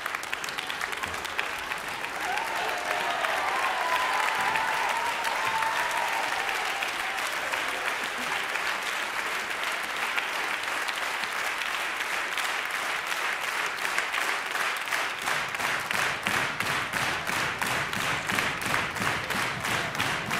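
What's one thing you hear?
An audience applauds loudly in a large hall, the clapping turning into steady rhythmic claps.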